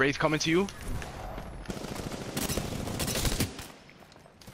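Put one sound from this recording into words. Gunfire crackles from a video game rifle.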